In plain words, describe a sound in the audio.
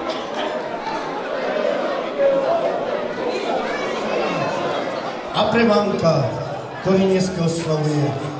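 A crowd of guests chatters in a large echoing hall.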